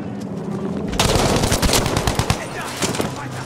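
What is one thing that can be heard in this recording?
A rifle fires a burst of rapid shots.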